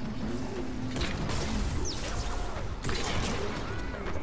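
Weapons fire bursts of crackling energy blasts.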